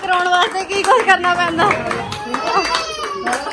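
Women clap their hands in rhythm.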